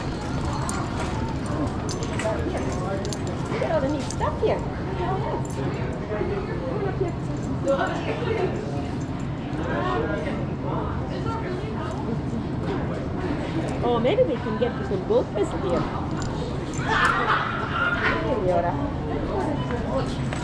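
A shopping cart's wheels rumble steadily across a hard floor.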